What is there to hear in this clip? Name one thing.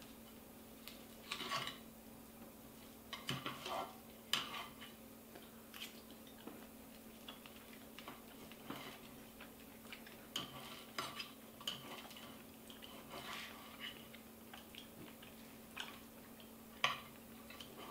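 A knife scrapes and clicks against a plate.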